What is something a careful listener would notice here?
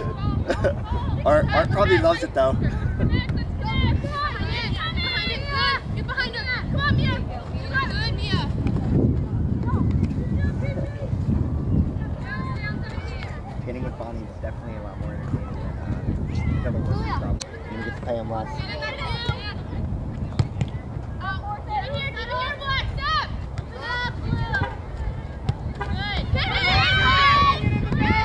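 Young women shout and call out to each other across the field.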